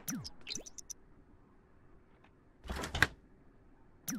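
A refrigerator door opens and thumps shut.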